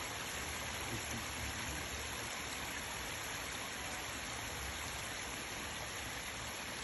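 Water trickles gently over rocks outdoors.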